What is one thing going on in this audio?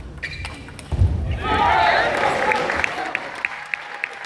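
A crowd in a large echoing hall cheers and claps.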